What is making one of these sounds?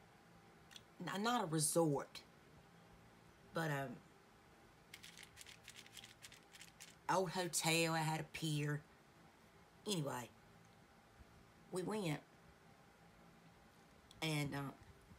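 A woman speaks calmly in short phrases close to the microphone.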